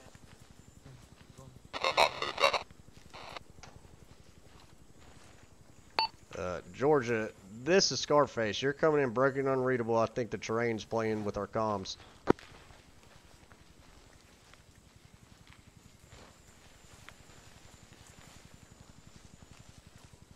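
Footsteps rustle through thick undergrowth.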